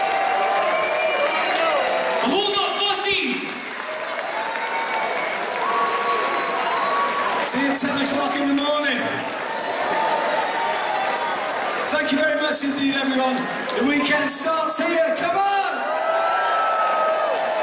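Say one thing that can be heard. A crowd claps along.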